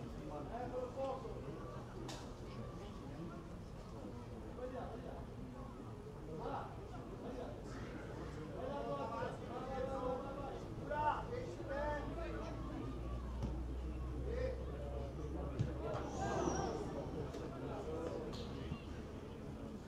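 Players shout to one another outdoors.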